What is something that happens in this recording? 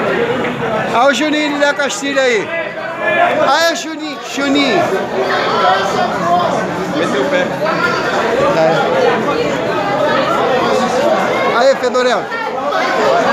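Men shout and cheer excitedly nearby.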